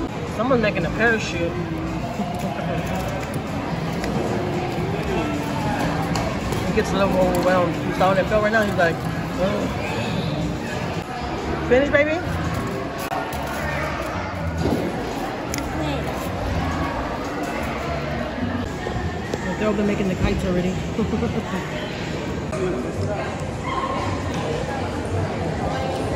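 Children and adults chatter in a large, echoing hall.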